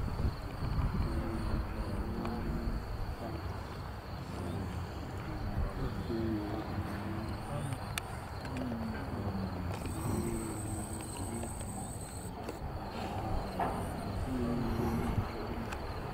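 A man recites a prayer aloud in a slow, chanting voice, outdoors.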